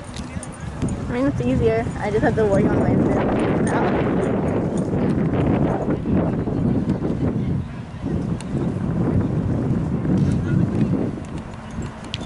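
A crowd of spectators shouts and cheers outdoors at a distance.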